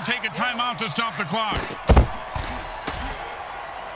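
Football players collide with a heavy thud.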